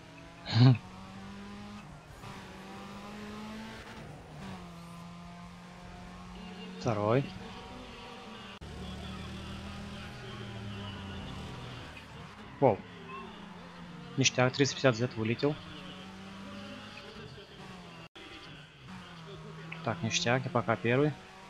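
A racing game car engine drones at speed.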